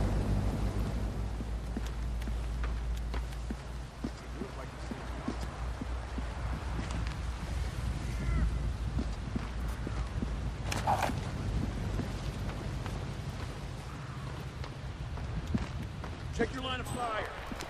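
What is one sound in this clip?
Footsteps tap on a hard rooftop.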